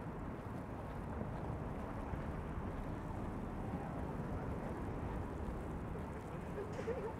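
A car drives past on a wet, snowy street.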